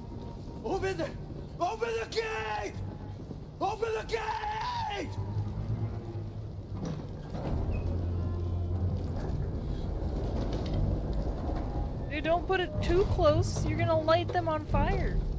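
A fire crackles and roars.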